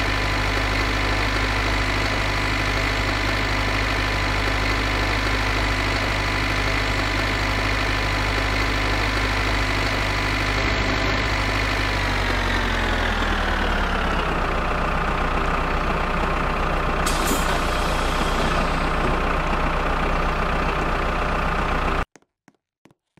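A train engine hums steadily, then drops in pitch as it winds down.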